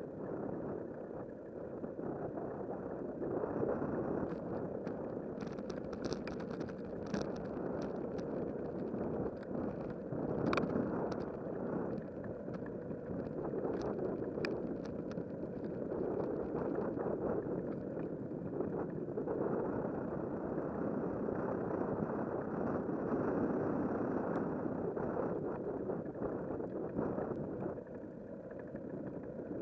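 Tyres roll over rough asphalt with a steady rumble.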